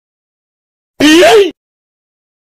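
A man groans in a strained voice.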